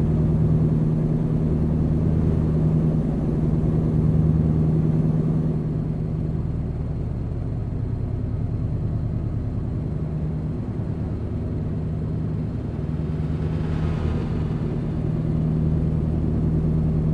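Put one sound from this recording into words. Tyres roll along a road with a steady rumble.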